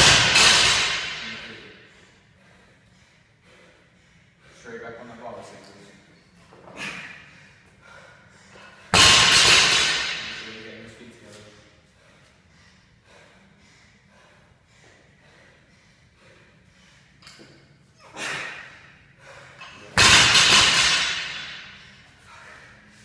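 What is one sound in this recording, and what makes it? A heavy barbell crashes down onto a rubber floor and rings out in an echoing room.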